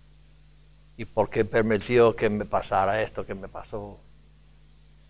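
An elderly man speaks with emphasis through a microphone.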